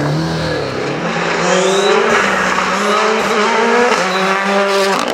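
A second rally car engine roars loudly as it speeds by.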